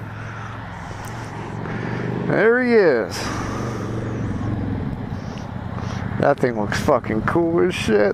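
A motorcycle engine hums and revs nearby.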